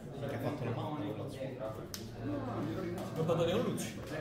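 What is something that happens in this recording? Cards riffle and flick as a deck is shuffled by hand.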